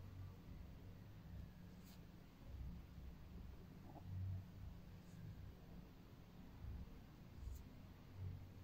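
Metal tweezers tick faintly against skin.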